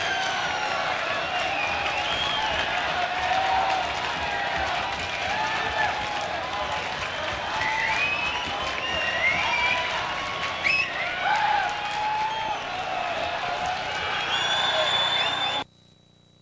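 People in a crowd whistle shrilly.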